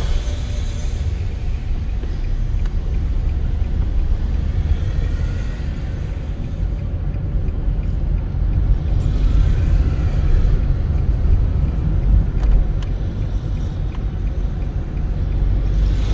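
Motorcycles ride by nearby.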